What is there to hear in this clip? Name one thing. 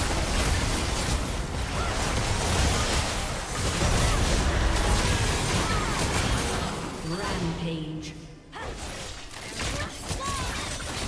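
Magic spells blast and crackle in a busy video game battle.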